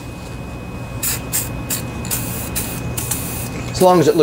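An aerosol spray hisses in short bursts.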